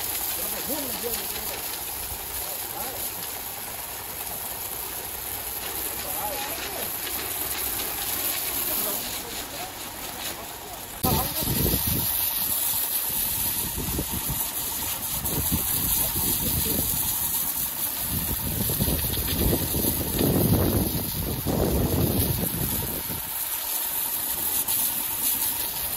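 A pressure washer sprays a jet of water against wood with a steady, loud hiss.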